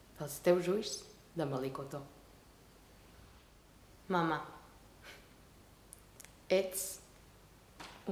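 A young woman reads aloud slowly and clearly, close by, with pauses between lines.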